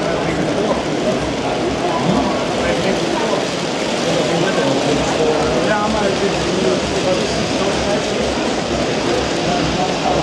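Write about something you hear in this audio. Model trains rumble and clatter steadily along the tracks.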